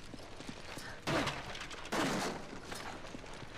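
Wooden crates smash apart with loud cracks.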